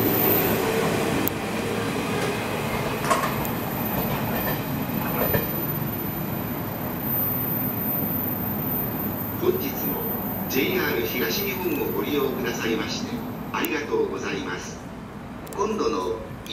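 A passenger train rumbles closer along the tracks.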